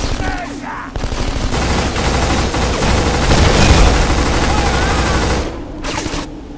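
An automatic rifle fires loud, rapid bursts.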